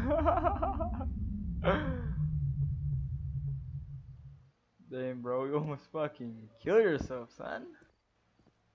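A young man laughs loudly over an online call.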